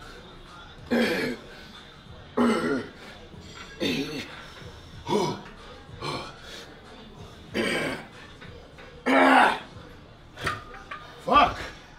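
A man grunts loudly with effort in short bursts.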